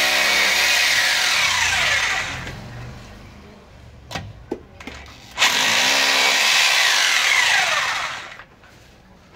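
A power drill whirs loudly in two bursts, winding down after each.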